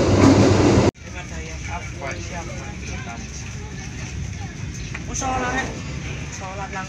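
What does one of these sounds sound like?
A train hums and rattles quietly from inside a carriage.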